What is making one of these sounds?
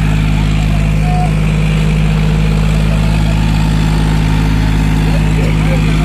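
A tractor engine roars steadily under heavy load, close by.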